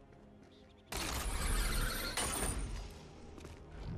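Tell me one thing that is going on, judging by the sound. Game sound effects whoosh and rumble as a character rides a zipline.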